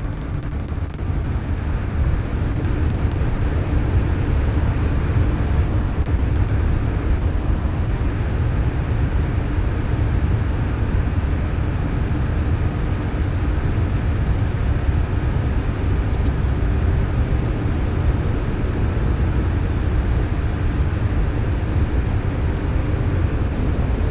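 A spacecraft engine rumbles low and steadily.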